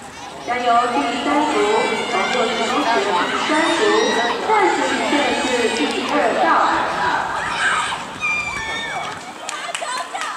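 A crowd of children cheers and shouts loudly outdoors.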